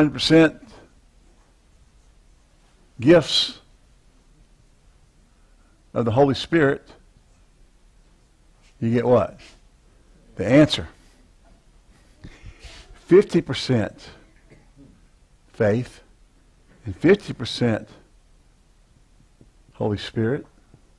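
A man speaks calmly in short bursts through a clip-on microphone.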